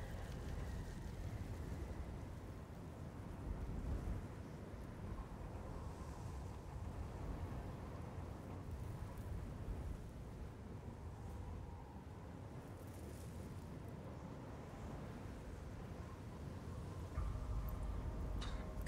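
Wind blows dust in a strong, steady rush outdoors.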